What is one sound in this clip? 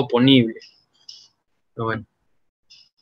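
A young man speaks calmly through a microphone in an online call.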